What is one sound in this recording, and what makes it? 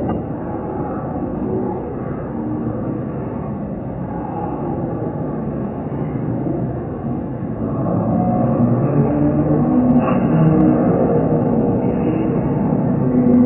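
A crowd of men and women shout and argue over one another, growing louder.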